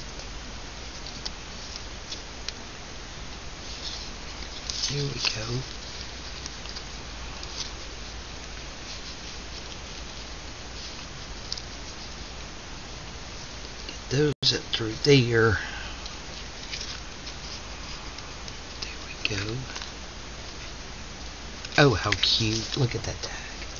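Paper rustles and crinkles under hands close by.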